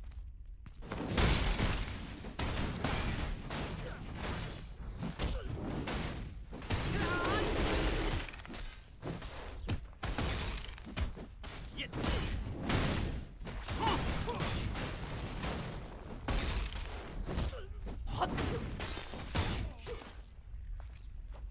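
Sword strikes hit enemies with sharp slashing impacts.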